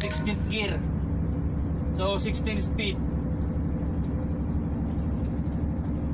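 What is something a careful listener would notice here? A heavy diesel truck engine drones while driving, heard from inside the cab.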